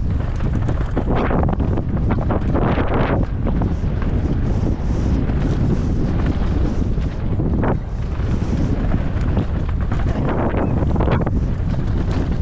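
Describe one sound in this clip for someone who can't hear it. Wind rushes loudly past a fast-moving rider.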